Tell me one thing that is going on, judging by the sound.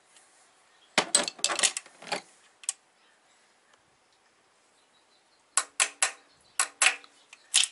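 A metal tool clicks and rattles against engine parts.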